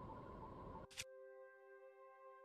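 A game menu opens with a soft chime.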